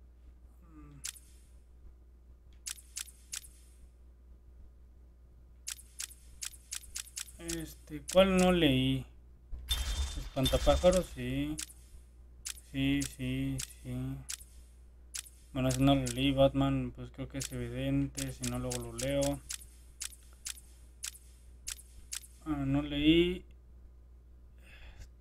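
Short electronic menu clicks tick as a selection moves from item to item.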